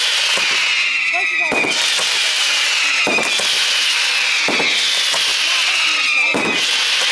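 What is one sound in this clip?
Fireworks burst with sharp bangs.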